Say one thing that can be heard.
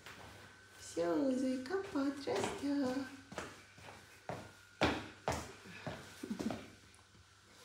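A young girl speaks cheerfully close by.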